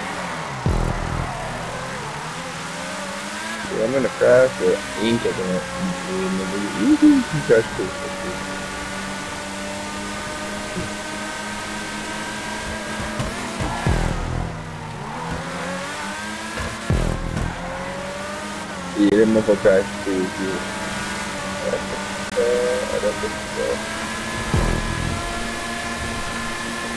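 A racing car engine roars at high revs, dipping briefly as it shifts gears.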